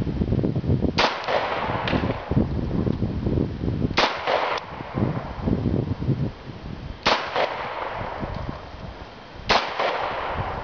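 A pistol fires single shots outdoors, each with a short echo.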